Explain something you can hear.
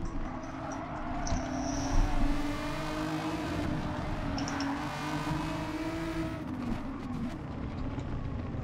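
Tyres rumble over kerbs.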